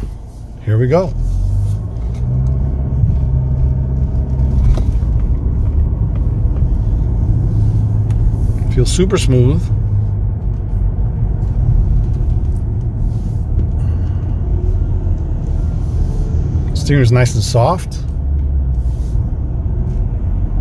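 A car engine hums low and steady as the car drives along.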